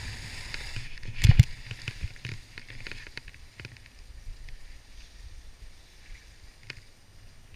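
Skis swish softly through deep powder snow.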